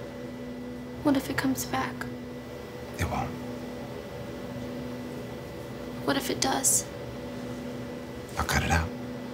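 A young woman speaks quietly and tensely, in short bursts with pauses.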